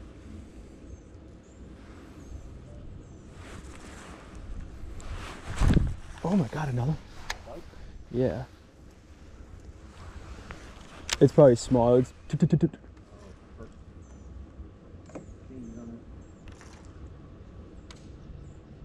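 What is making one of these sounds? A fishing reel clicks and whirs as line is reeled in.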